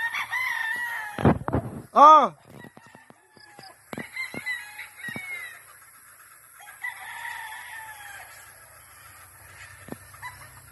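Many chickens cluck and squawk outdoors.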